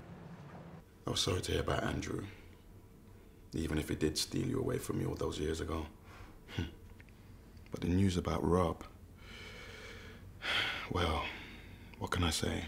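A man talks in a deep voice nearby.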